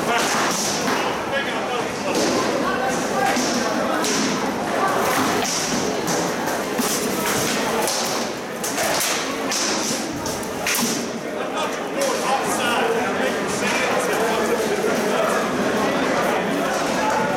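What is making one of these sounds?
A crowd murmurs and chatters throughout in a large echoing hall.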